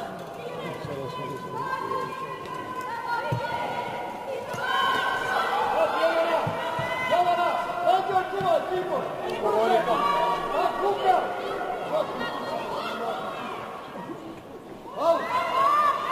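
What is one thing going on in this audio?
Young women on a pitch call out and shout to each other in a large echoing hall.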